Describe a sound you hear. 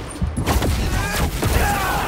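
A heavy blow lands with a loud whoosh and boom.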